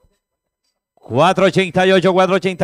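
A man announces loudly and rapidly over a loudspeaker.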